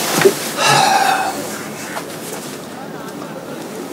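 A man laughs softly nearby.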